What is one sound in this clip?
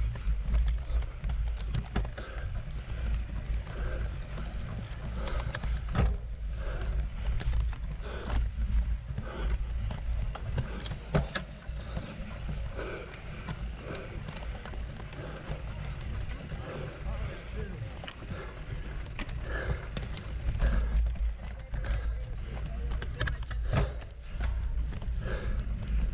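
Bicycle parts rattle and clack over bumps.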